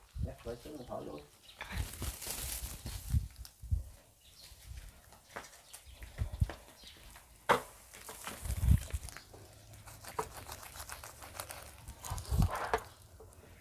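Leaves rustle as a potted shrub is handled.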